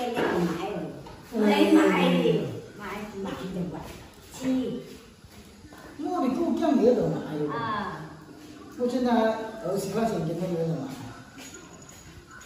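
An elderly woman talks close by.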